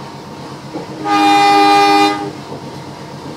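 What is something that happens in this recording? A diesel locomotive's horn blasts once.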